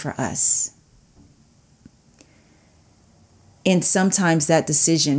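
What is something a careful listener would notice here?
A woman speaks with animation, close to a microphone.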